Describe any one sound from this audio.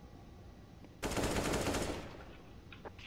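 A rifle fires a short, loud burst of gunshots.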